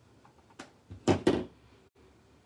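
A stamp block knocks softly onto paper.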